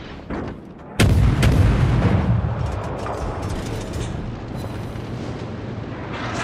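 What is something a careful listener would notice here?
Shells burst in explosions with crackling fire.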